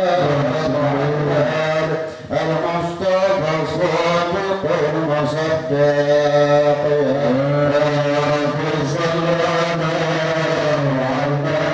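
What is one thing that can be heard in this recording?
A young man sings along through a microphone.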